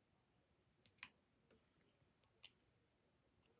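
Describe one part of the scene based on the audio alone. A marker cap clicks softly.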